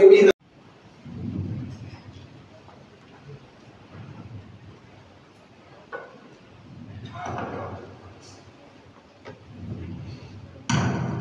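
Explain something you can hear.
A crowd of men murmurs and talks quietly.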